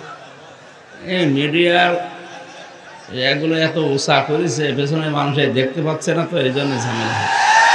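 A man preaches passionately into microphones, his voice loud and echoing.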